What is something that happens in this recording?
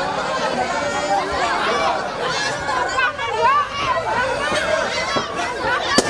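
A crowd of children shout and chatter excitedly close by.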